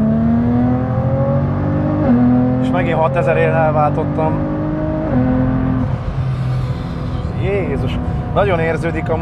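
A car engine hums and drones steadily, rising in pitch as it speeds up.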